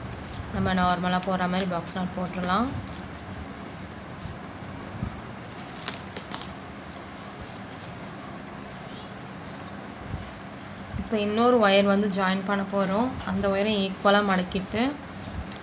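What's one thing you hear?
A thin plastic cord rustles softly as hands knot it.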